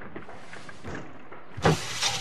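A window slides open with a creak.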